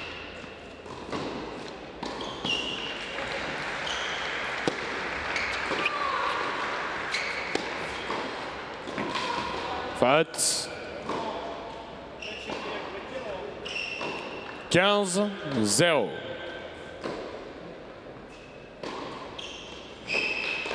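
A tennis ball is hit hard with a racket, again and again.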